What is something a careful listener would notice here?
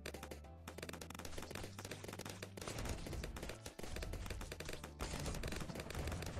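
Cartoonish game sound effects pop and crackle rapidly.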